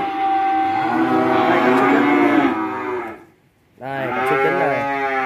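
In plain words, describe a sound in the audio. Cows moo loudly close by.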